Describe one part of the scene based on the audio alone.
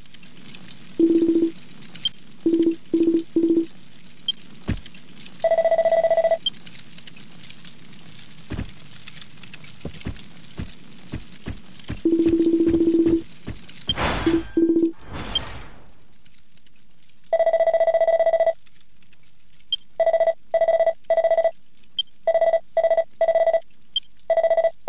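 Short electronic beeps blip in quick bursts.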